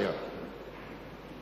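An elderly man speaks into a microphone.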